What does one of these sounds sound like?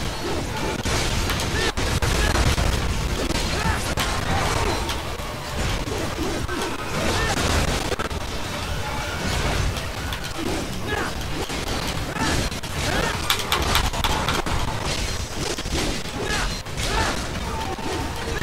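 Explosions and impacts boom heavily.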